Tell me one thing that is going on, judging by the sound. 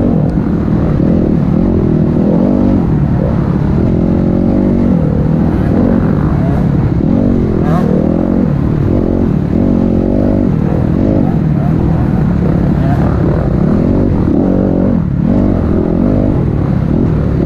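A motorbike engine roars up close, revving up and down again and again.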